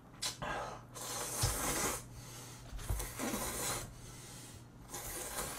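A young man slurps noodles loudly, close by.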